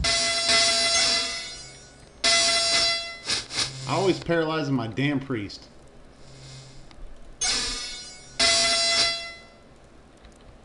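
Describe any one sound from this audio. A fire spell effect from an old computer game bursts out several times.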